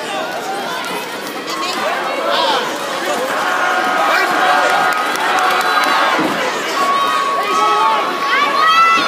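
A crowd of men and women cheers and shouts in a large echoing hall.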